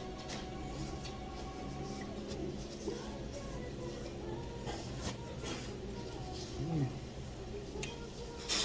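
Paper tissue crinkles and rustles close by.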